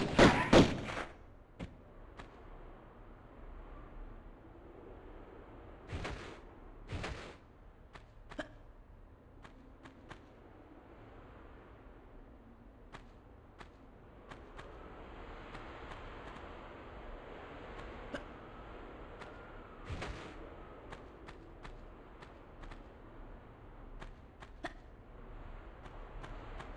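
Footsteps patter on a stone floor.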